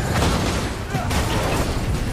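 Metal debris crashes and clatters in a loud explosion.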